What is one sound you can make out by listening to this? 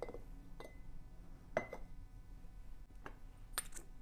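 A wooden candle holder is set down on a table with a soft knock.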